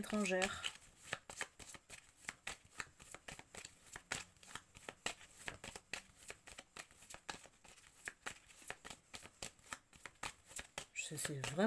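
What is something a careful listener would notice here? Cards are shuffled by hand with quick, soft flicking and riffling.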